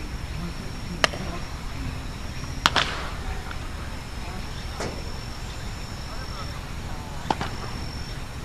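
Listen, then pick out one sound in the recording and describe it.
A bat cracks sharply against a ball several times.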